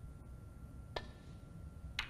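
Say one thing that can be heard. A cue sharply strikes a snooker ball.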